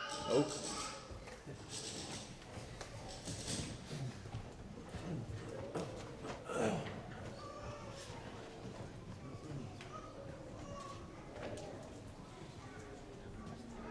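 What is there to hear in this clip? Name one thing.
A man chants in a large echoing hall.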